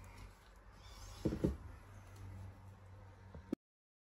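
A bracelet is set down on a hard surface with a soft knock.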